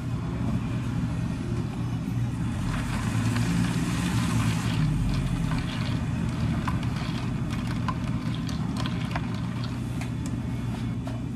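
A spoon stirs and clinks against a glass of ice.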